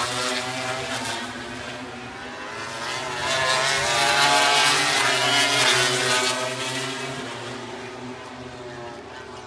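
A racing motorcycle engine screams past at high revs, growing louder and then fading away.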